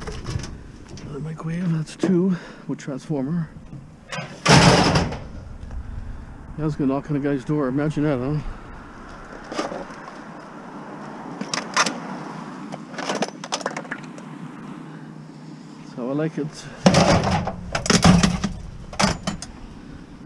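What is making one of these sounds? Metal appliances clank and bang as they are loaded into a car.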